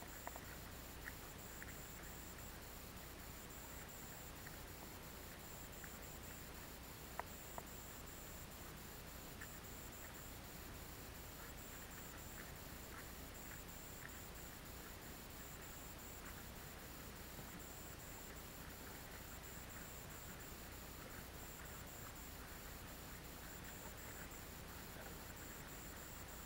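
Water laps against a small boat's hull.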